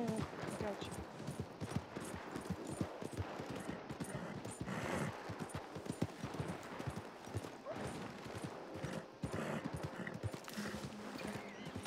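Horse hooves thud steadily on soft ground.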